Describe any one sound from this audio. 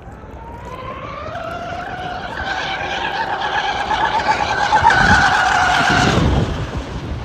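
A boat's motor whines high, rising in pitch as it speeds closer, then cuts away sharply.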